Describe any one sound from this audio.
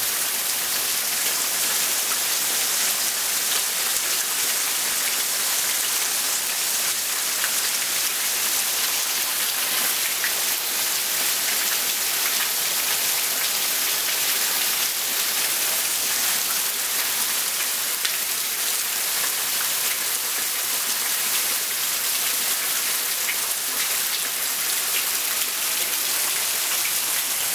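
Heavy rain pours steadily and hisses on wet ground nearby.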